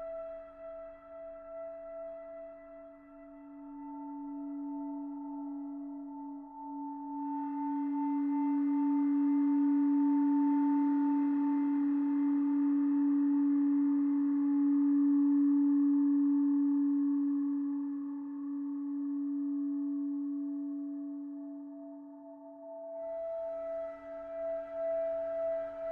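A synthesizer plays steady droning tones that swell and fade slowly.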